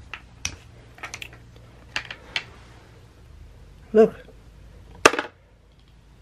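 Plastic toy pieces clack together.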